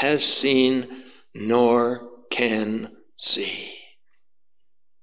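An older man preaches forcefully into a microphone in an echoing room.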